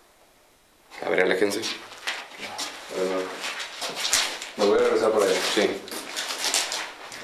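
A man speaks quietly nearby in a hushed voice.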